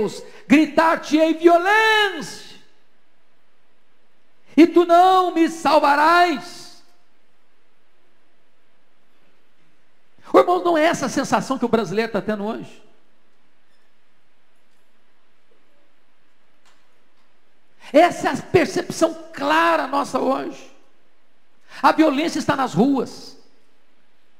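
A middle-aged man preaches passionately into a microphone in bursts, with long pauses between.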